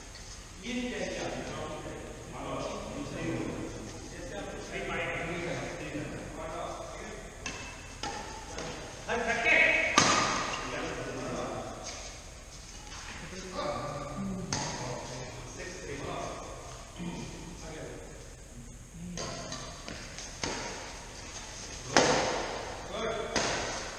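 Badminton rackets hit a shuttlecock with sharp pops.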